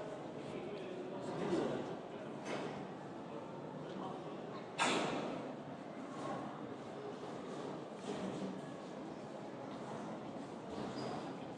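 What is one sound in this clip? A crowd of people murmurs and chats nearby.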